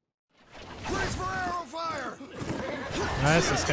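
A horse whinnies loudly close by.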